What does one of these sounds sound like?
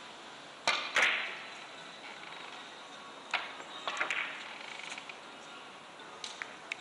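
Billiard balls knock against each other and the cushions.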